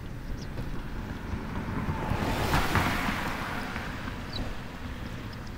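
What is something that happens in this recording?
A car drives past on the road, rising and fading quickly.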